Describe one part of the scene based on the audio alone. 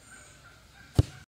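A football is kicked hard with a sharp thud.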